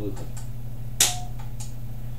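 A sharp metallic click sounds once.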